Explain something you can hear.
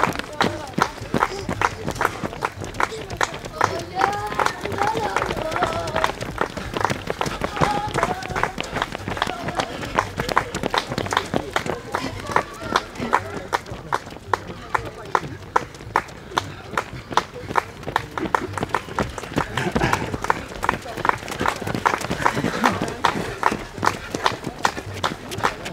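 Many running shoes patter steadily on pavement close by.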